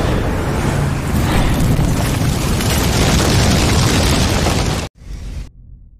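A huge explosion roars with crackling fire.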